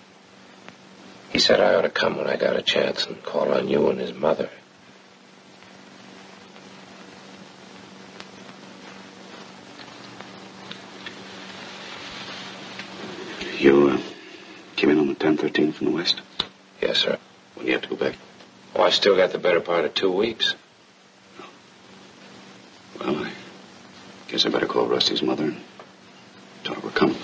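A young man answers quietly.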